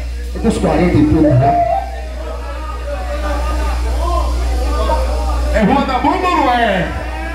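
A live band plays with electric guitars and drums.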